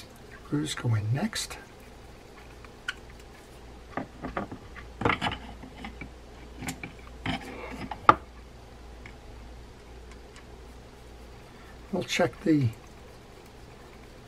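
A screwdriver clicks and scrapes against a small metal screw.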